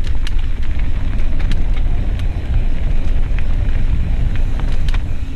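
Wind rushes past a fast-descending mountain biker.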